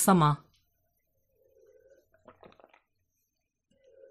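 A young woman gulps down a drink.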